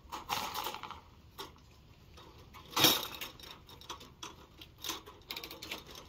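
A metal cage door latch rattles and clicks.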